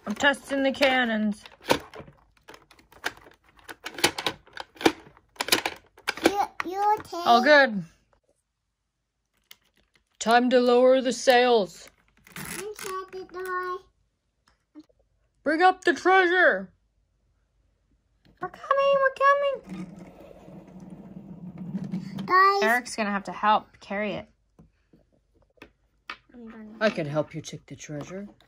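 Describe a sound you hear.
A young child talks playfully close by.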